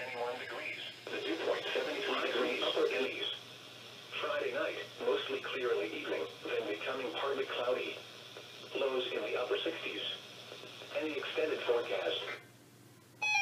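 A voice reads out calmly through a small radio loudspeaker.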